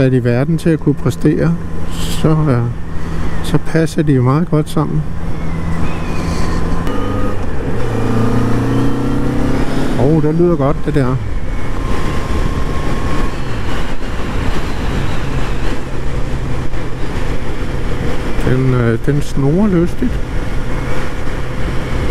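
A motorcycle engine hums steadily and revs up and down with gear changes.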